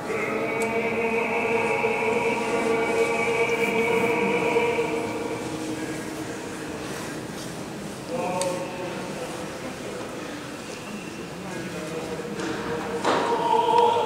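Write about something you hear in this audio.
A crowd of men call out and chant together in an echoing hall.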